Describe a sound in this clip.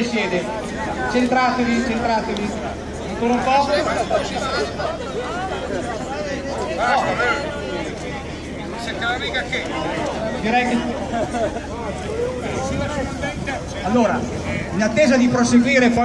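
A crowd of men and women chatters outdoors close by.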